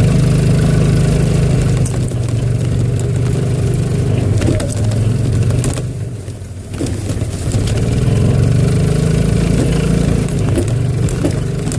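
A golf cart motor hums as the cart rides along.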